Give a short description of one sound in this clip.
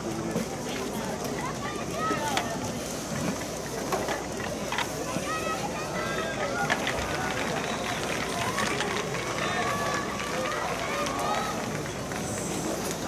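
A crowd of spectators chatters steadily outdoors in a large open stadium.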